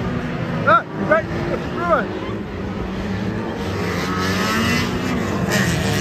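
Car engines roar and rev on a dirt track nearby.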